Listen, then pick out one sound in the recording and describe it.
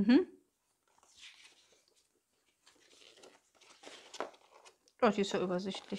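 A paper booklet rustles as it is unfolded.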